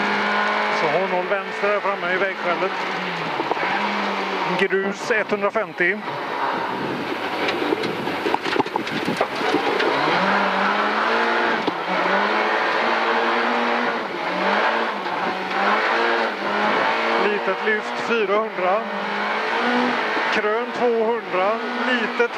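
A rally car engine roars, revving up and down through the gears.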